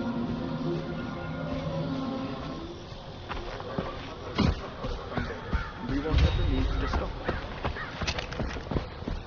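Footsteps swish through tall grass.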